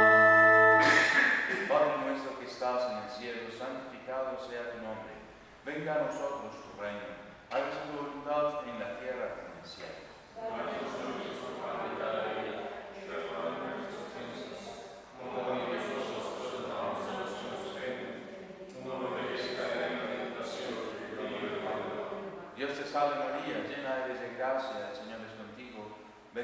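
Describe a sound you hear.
A man recites a prayer aloud in a steady voice, heard in an echoing hall.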